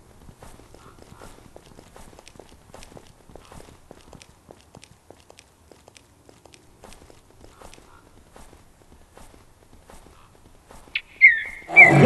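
Flippers slap softly and steadily on snow.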